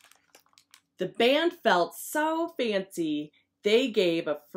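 A woman reads a story aloud close to a microphone, with an animated voice.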